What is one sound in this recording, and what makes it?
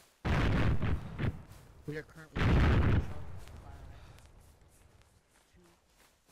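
Footsteps rustle through dry undergrowth.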